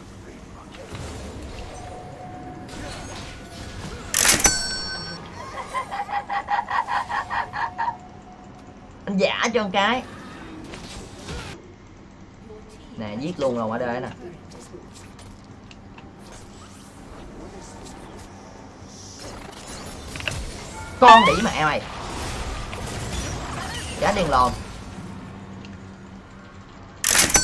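Video game sound effects clash and chime.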